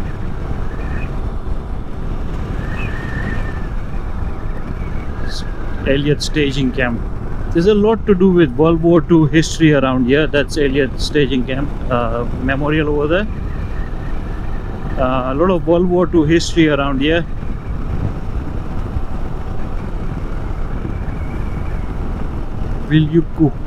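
Wind rumbles against the microphone throughout.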